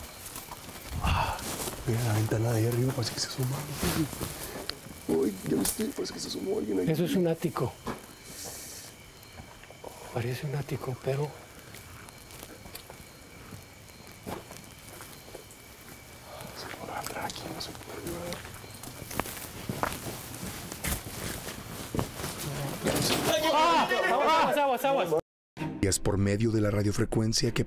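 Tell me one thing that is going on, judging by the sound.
A man speaks in a low, hushed voice nearby.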